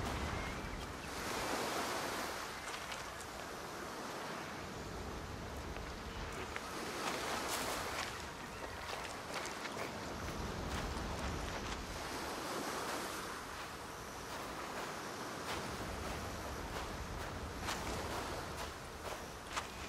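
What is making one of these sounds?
Waves wash softly onto a shore.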